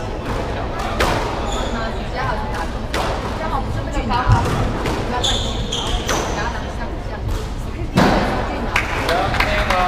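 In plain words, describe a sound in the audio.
A squash ball smacks sharply off walls and rackets in an echoing court.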